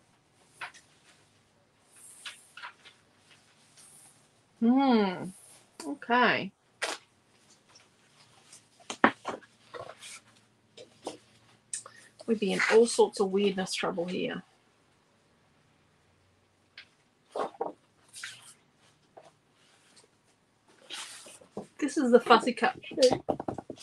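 Sheets of paper rustle and slide against each other.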